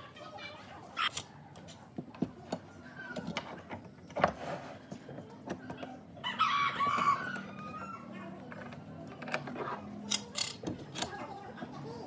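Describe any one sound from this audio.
Metal bar clamps clank and knock against wooden boards.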